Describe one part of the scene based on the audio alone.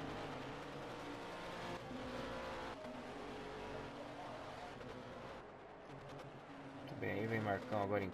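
Racing car engines roar at high revs.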